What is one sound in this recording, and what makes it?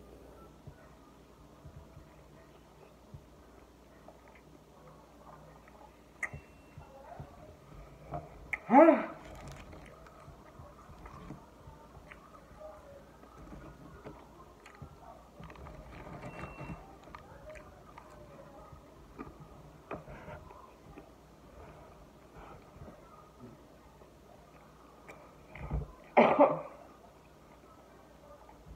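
A woman chews food close by.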